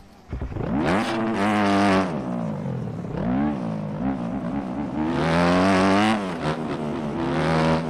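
A dirt bike engine revs up and down as the bike races along.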